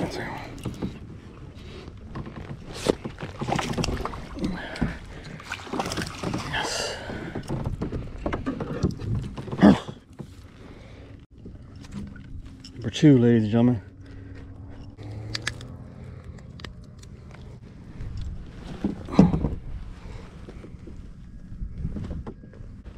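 Fishing gear knocks and clatters on a plastic kayak.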